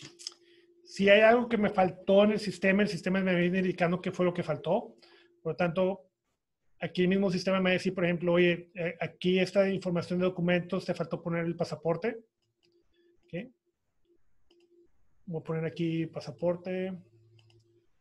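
A man talks calmly and steadily into a microphone, close by.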